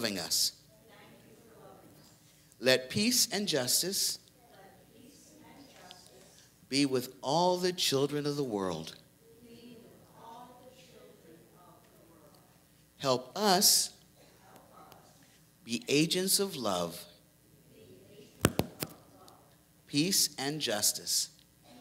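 A woman speaks in bursts through a microphone in a large echoing hall, pausing between phrases.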